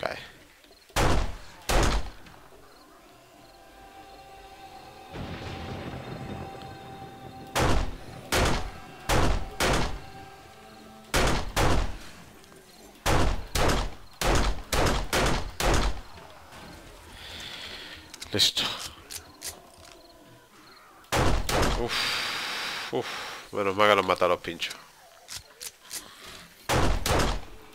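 A pistol fires loud, sharp shots in quick bursts.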